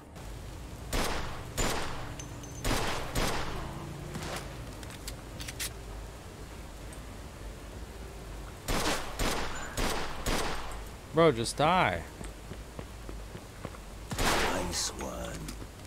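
Pistol shots ring out in short bursts, with echoing tails.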